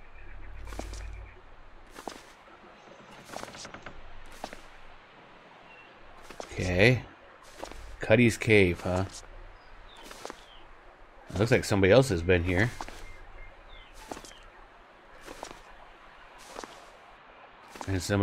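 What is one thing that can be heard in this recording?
Footsteps crunch slowly and evenly on snow.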